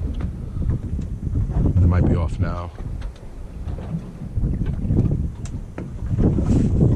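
Small waves lap gently on open water.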